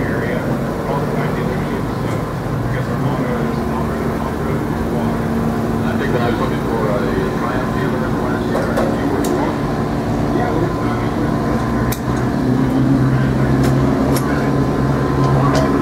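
A small generator hums steadily nearby.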